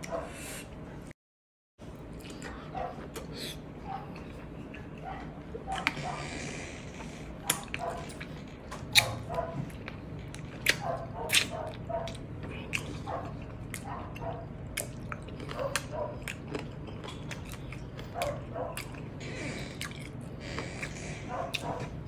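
Fingers squish and pick through soft food on a wooden plate.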